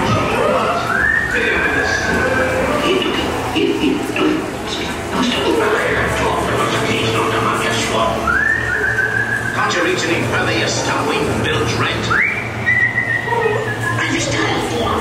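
A man whistles sharply several times.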